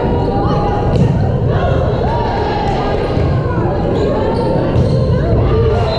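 A volleyball is struck with sharp slaps.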